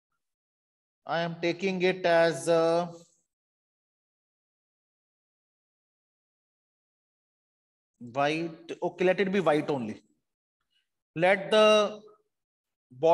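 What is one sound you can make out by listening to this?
A man speaks calmly into a microphone, explaining in short bursts.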